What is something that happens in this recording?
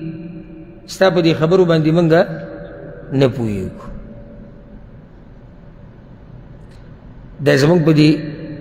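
A man recites in a slow, melodic chant through a microphone, pausing between phrases.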